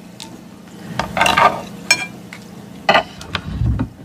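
Crisp lettuce crunches as a woman chews.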